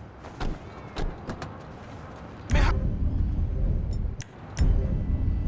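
Footsteps tap on concrete.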